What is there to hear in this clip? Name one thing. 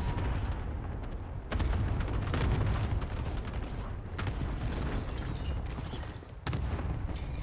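Wind rushes loudly past during a fall through the air.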